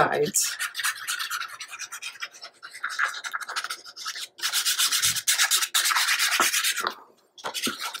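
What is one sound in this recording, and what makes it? A glue stick rubs quickly back and forth across paper.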